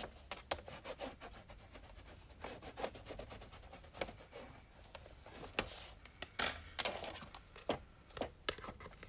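Paper rustles and slides as it is handled.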